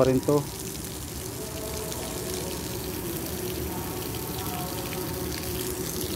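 Water sprays from a hose and splashes onto soil.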